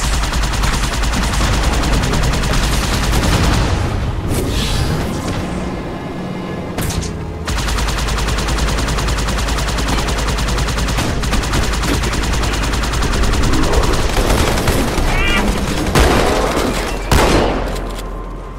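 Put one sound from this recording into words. A hovering vehicle's engine hums and whines steadily.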